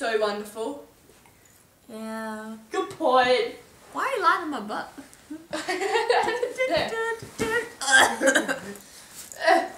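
A teenage girl laughs loudly close by.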